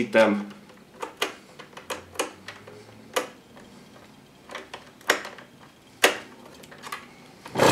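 Small plastic parts click and snap into place.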